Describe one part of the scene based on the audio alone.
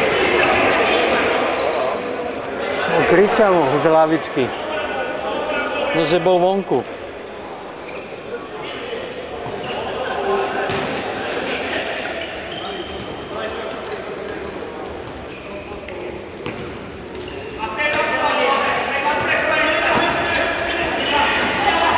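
A crowd murmurs and calls out in a large indoor hall.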